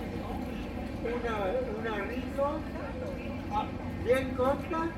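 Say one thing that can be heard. An adult man and woman talk casually as they walk close by.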